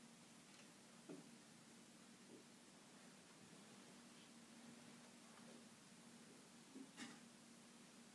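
Objects knock softly on a table close by.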